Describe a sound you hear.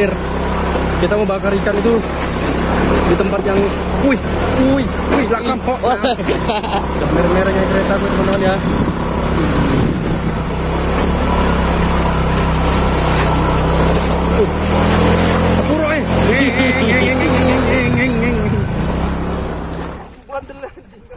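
A motorbike engine rumbles steadily.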